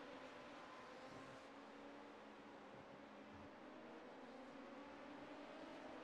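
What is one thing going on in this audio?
Racing car engines whine steadily.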